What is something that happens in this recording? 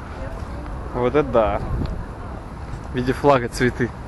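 Adults talk close by outdoors.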